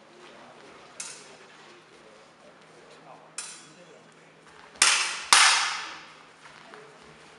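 Steel swords clash and ring sharply in a large echoing hall.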